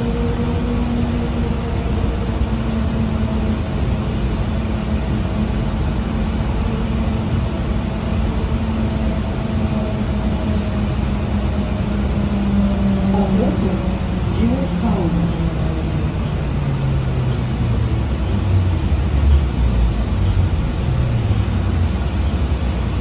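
A bus engine hums and whines steadily inside the cabin, its pitch slowly falling as the bus slows.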